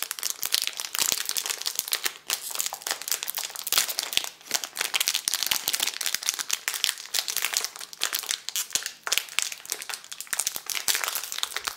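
A plastic candy wrapper crinkles and rustles up close.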